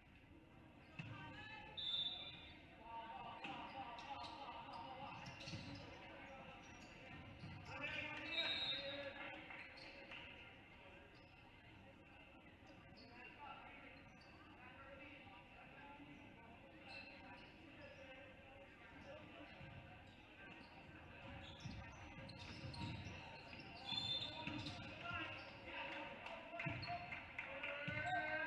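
A basketball thumps as it bounces on a hardwood floor.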